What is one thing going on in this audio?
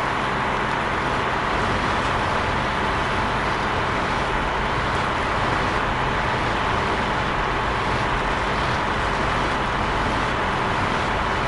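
A heavy tractor engine rumbles steadily.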